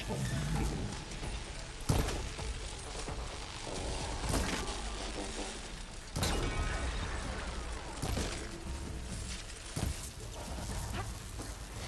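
Electric blasts crackle and zap in bursts.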